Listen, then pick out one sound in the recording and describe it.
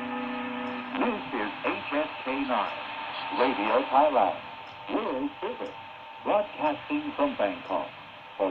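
A shortwave radio gives off warbling, wavering sounds in short bursts.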